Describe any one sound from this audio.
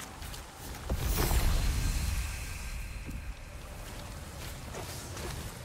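A magical whoosh swells up and rings out.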